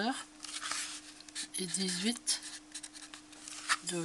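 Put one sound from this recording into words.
A felt marker scratches and squeaks across cardboard.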